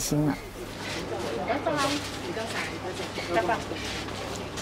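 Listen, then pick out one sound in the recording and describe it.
A woman speaks quietly a short distance away.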